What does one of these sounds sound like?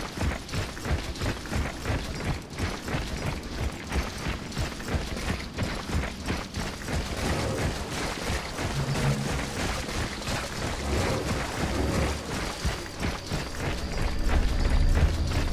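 Many heavy footsteps march steadily on rough ground.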